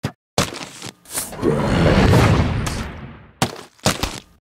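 A fiery blast roars and crackles.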